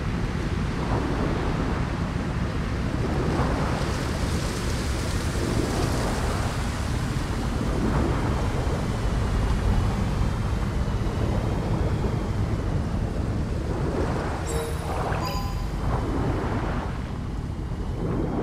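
A low underwater rumble roars steadily throughout.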